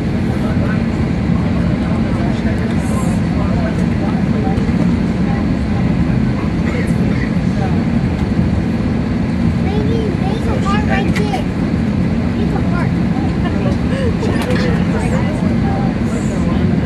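A jet engine hums steadily and loudly from inside an aircraft cabin.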